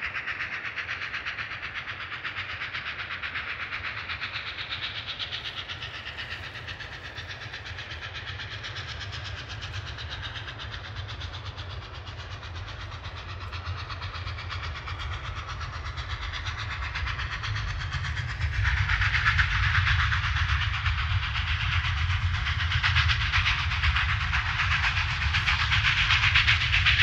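A train rumbles low in the distance and grows louder.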